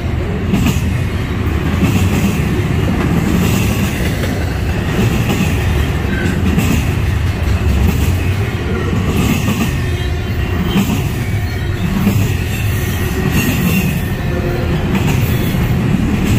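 Steel wheels clack and squeal on the track joints.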